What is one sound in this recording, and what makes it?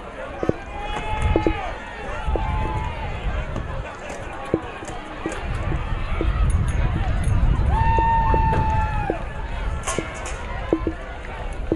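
A crowd cheers and shouts in an open-air stadium.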